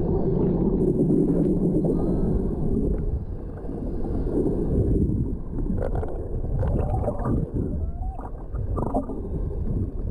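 A dolphin clicks and chirps underwater.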